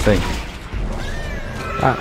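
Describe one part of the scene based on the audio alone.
A gun fires with a sharp blast.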